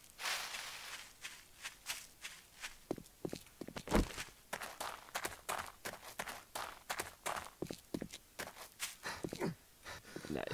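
Footsteps crunch on gravel, walking at a steady pace.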